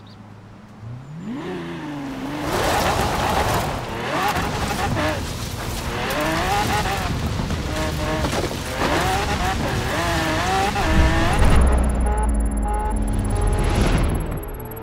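A sports car engine revs up and roars at high speed.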